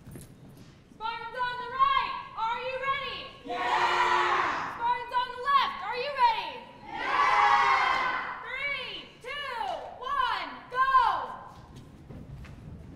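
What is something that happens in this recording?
A young woman sings with feeling in a large echoing hall.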